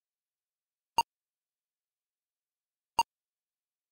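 A video game gives short, sharp blips.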